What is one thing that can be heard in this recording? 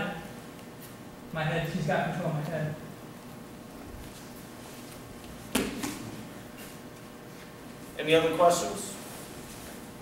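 Fabric rustles and bodies thump on a mat as two men grapple.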